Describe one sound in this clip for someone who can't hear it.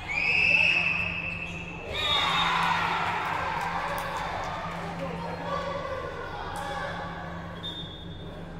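A referee's whistle blows sharply in an echoing hall.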